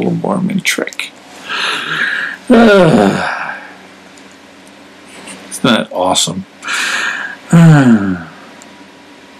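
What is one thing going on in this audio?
A man speaks close to a microphone, in short bursts with pauses.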